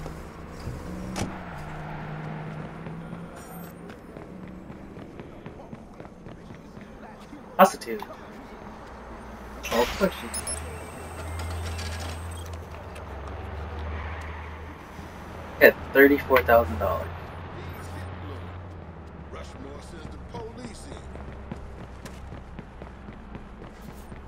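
Footsteps tread on pavement at an easy pace.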